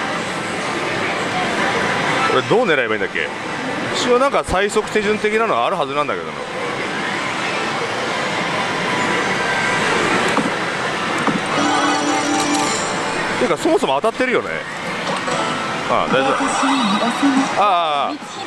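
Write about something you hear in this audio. A slot machine plays loud, busy electronic music and effects.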